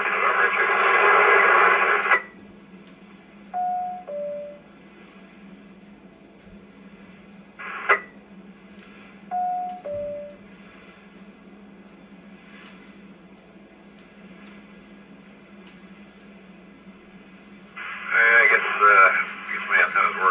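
A radio hisses with loud bursts of static.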